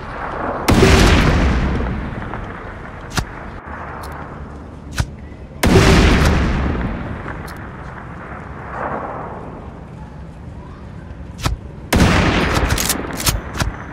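Loud rifle shots boom and echo away, several times.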